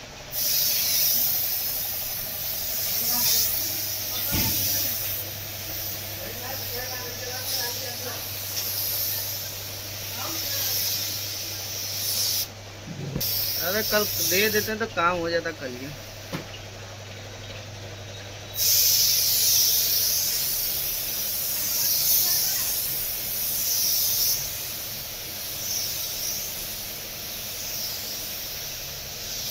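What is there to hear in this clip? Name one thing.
A spray gun hisses steadily as paint is sprayed, pausing now and then.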